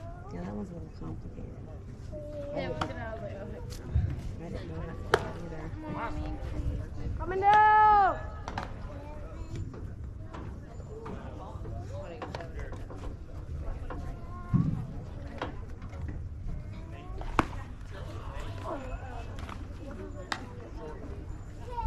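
Spectators talk and call out around an outdoor ball field.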